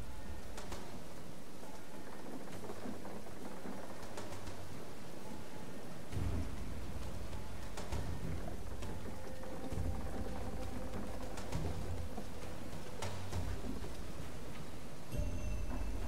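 Hands and feet knock softly on wooden planks while climbing.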